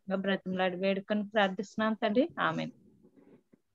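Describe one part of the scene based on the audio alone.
A middle-aged woman chants in a steady, sing-song voice through an online call.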